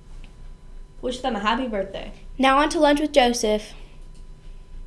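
A young girl speaks clearly and calmly close to a microphone.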